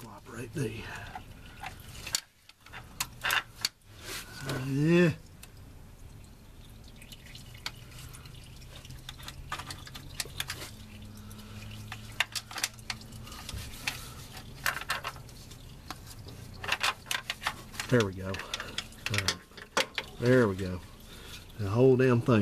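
A wrench clicks and clinks against metal bolts.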